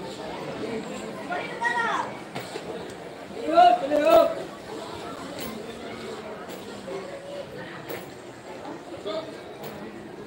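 An escalator rumbles steadily.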